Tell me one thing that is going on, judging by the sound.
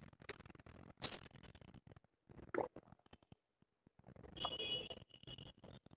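A man gulps water from a bottle.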